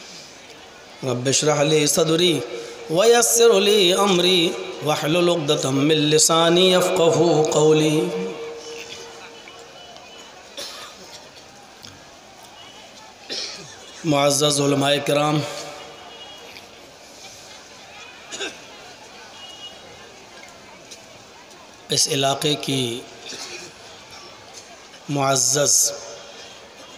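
A man chants in a melodic voice through a microphone and loudspeakers, in bursts with pauses.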